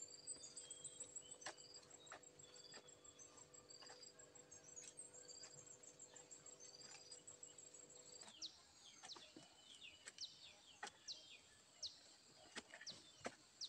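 A hoe chops into dry soil with short dull knocks.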